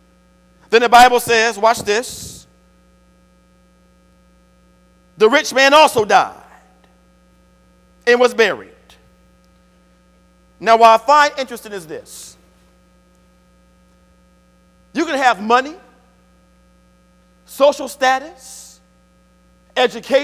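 A man preaches through a microphone in short, emphatic bursts with pauses between them, in a reverberant hall.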